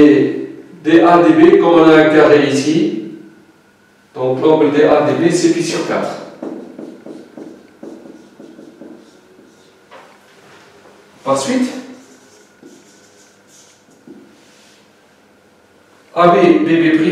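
An elderly man speaks calmly into a nearby microphone, explaining in bursts.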